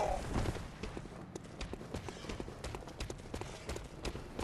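Footsteps clatter quickly on stone.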